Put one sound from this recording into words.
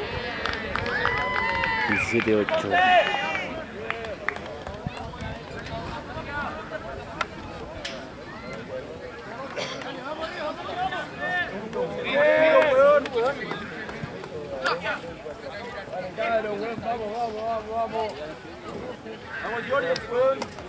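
Adult spectators shout and cheer nearby, outdoors in the open.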